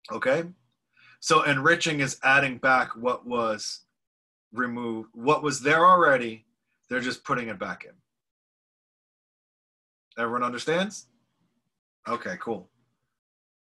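A man speaks calmly into a microphone, heard as if over an online call.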